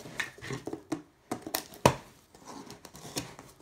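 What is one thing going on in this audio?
Packing tape rips as it is peeled off a cardboard box.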